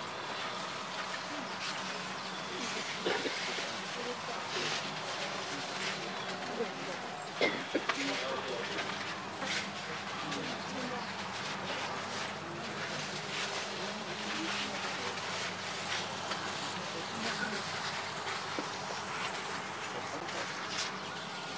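A small crowd of men and women talk and murmur close by.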